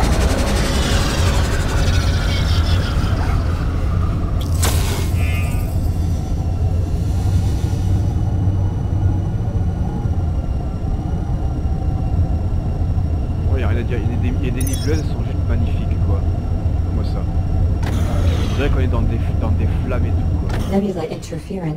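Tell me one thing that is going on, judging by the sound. A spaceship engine hums with a deep, steady rumble.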